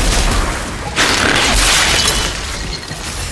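An explosion bursts with a loud hissing roar.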